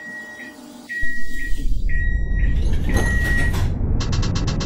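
A tram's motor rumbles loudly as the tram starts to move.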